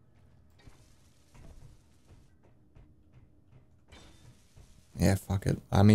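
Footsteps clank softly on a metal floor.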